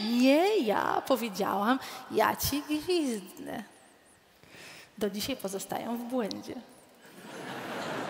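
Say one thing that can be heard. A woman speaks with animation into a microphone, heard through loudspeakers.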